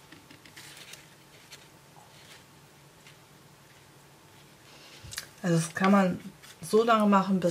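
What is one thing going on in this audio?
A paintbrush brushes softly across damp paper.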